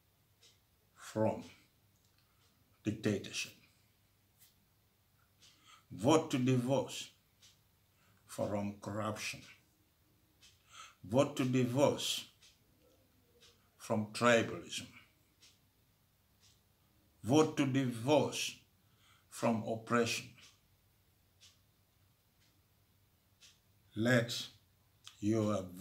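An elderly man speaks slowly and calmly in short phrases, heard through a computer microphone.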